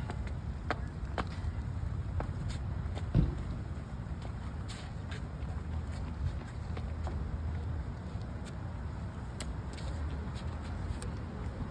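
Shoes tap and scuff on stone pavement.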